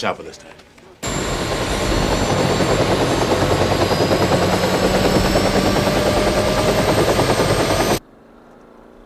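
A helicopter roars loudly overhead with whirring blades.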